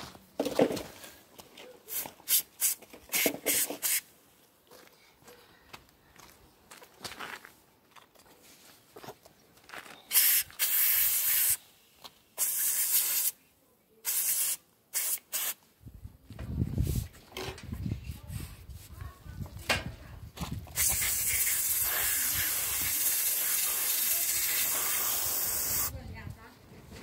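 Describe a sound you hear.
An aerosol can hisses in short bursts as it sprays.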